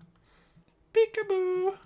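A young man makes a drawn-out, thoughtful vocal sound close to a microphone.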